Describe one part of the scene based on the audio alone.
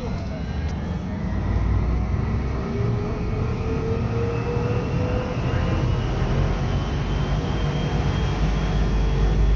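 A large truck's engine drones close by outside and passes.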